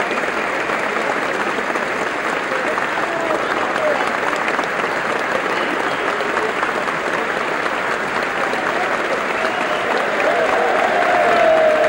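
A large crowd applauds loudly in a big echoing hall.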